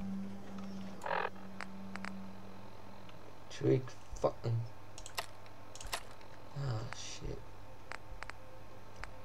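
Menu clicks and beeps sound in quick succession.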